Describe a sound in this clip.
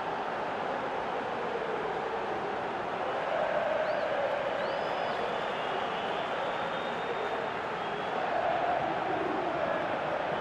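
A stadium crowd roars steadily, swelling as a goal is scored.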